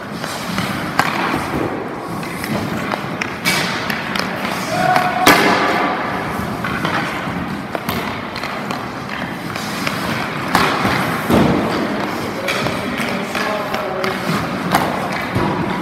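An ice hockey stick slaps a puck in an echoing rink.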